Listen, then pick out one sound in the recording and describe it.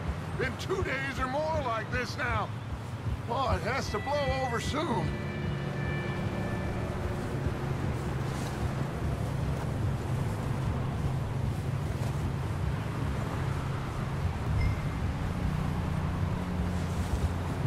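A horse's hooves thud steadily through snow.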